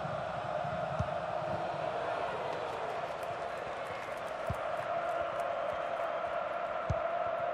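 A ball is kicked with dull thumps.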